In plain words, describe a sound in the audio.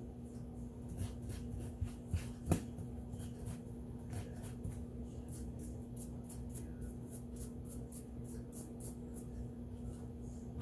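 A nail file rasps against a fingernail in quick, short strokes.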